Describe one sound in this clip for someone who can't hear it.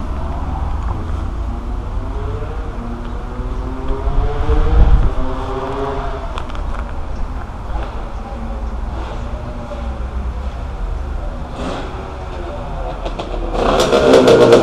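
A motorcycle engine idles and putters outdoors.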